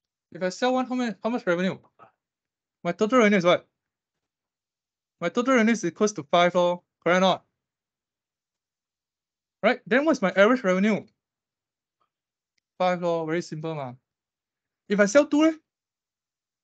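A young man speaks calmly through a microphone, in short phrases with pauses.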